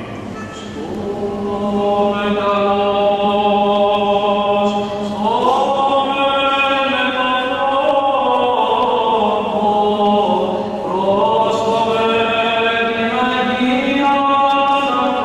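A man chants a long held note beneath the choir.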